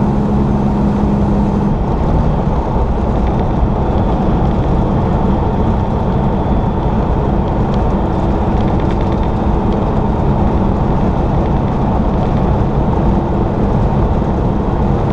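A vehicle's engine hums steadily.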